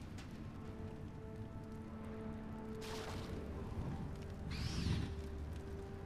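A fire burns with a roaring whoosh.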